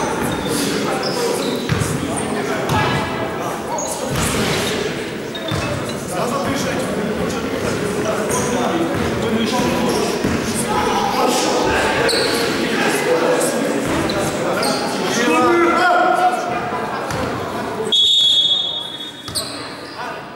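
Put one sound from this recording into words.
Young men talk and call out in a large echoing gym.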